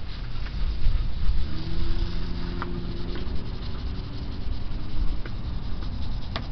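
A cloth rubs against a car headlight.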